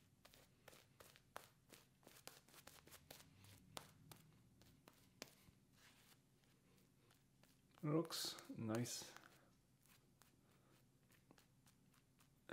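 A shaving brush swishes and crackles against lathered skin.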